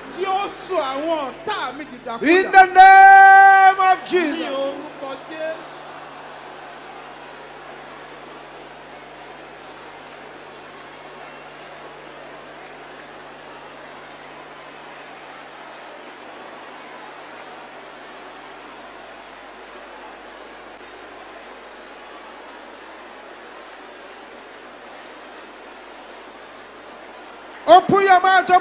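A man preaches loudly and passionately through a microphone.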